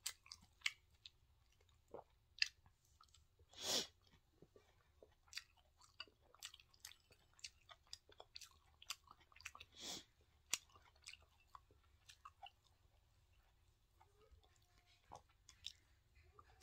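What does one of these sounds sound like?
A young woman chews crunchy vegetables close to a microphone, with crisp crunches and wet mouth sounds.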